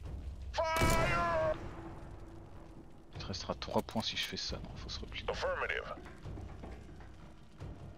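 Sci-fi weapons fire in short bursts.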